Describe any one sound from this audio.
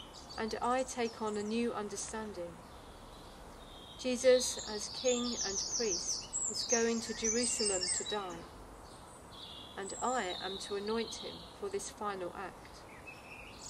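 A woman reads aloud calmly, close by.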